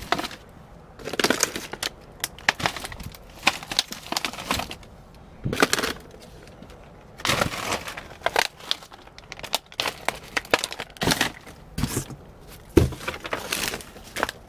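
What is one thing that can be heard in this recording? Plastic bags rustle and crinkle as a hand rummages through them.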